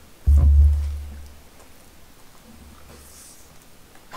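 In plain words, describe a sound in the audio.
A young man chews and smacks his lips.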